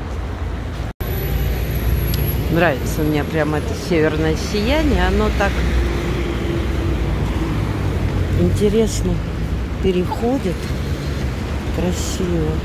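Car engines hum as traffic drives past.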